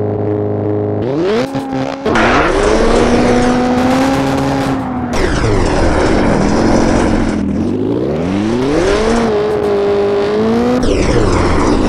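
A rally car engine revs up and down, rising and falling in pitch.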